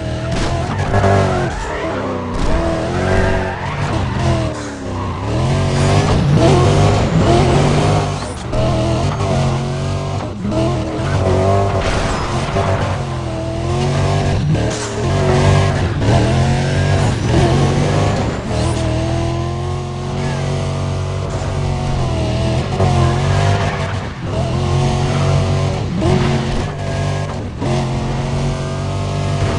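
A sports car engine roars at high speed, revving up and down as it shifts gears.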